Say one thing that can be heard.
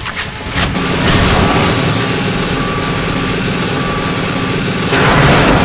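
A drill-like weapon whirs and grinds.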